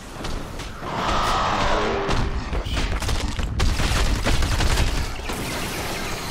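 Loud explosions boom and crackle up close.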